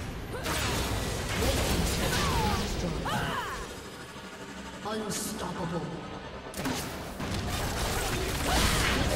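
Spell effects whoosh and crackle in a fast fight between game characters.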